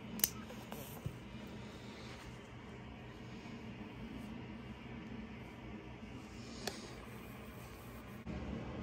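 A baby sucks softly on a pacifier.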